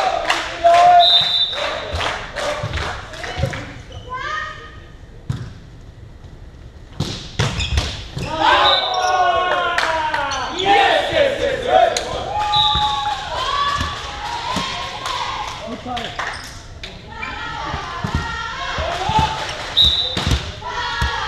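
Sneakers squeak on a hall floor.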